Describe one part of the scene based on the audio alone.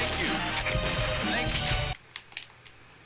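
Game music and sound effects play loudly.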